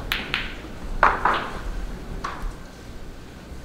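Snooker balls click together on a table.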